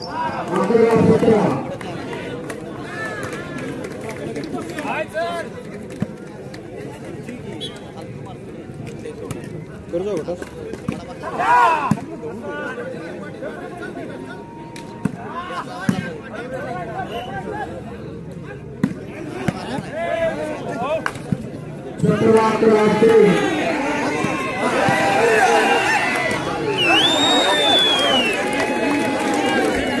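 Several men shout and call out to each other outdoors.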